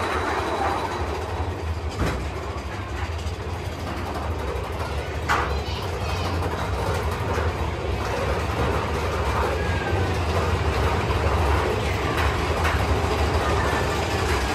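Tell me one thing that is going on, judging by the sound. A ride train rumbles and clatters along its track through an echoing tunnel.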